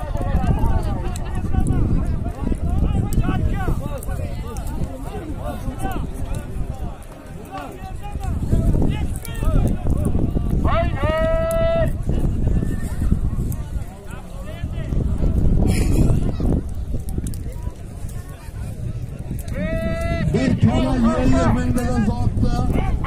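A large crowd of men shouts and chatters outdoors.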